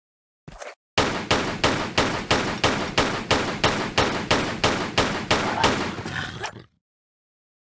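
Pistols fire in a rapid, steady volley.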